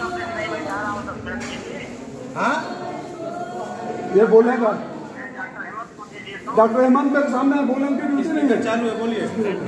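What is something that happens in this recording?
A middle-aged man speaks close by, into a phone.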